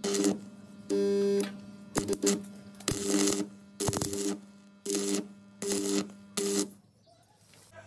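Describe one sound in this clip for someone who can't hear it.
An arc welder buzzes and crackles in short bursts.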